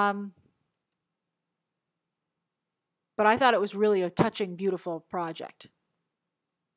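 A young woman speaks calmly into a close microphone.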